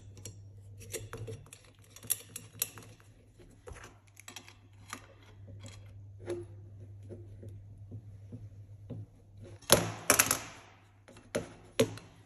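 Plastic pipe is pushed and twisted into a brass fitting with light clicks and scrapes.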